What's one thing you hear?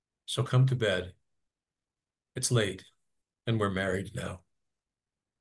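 An older man speaks calmly over an online call.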